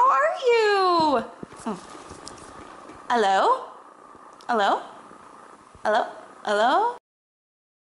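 A woman makes short, falling vocal sounds close by.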